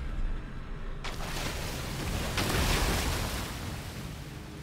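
A loud watery blast bursts and roars.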